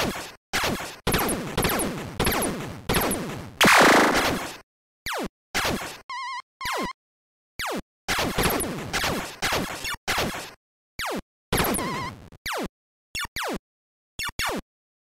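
Arcade laser shots zap repeatedly with falling tones.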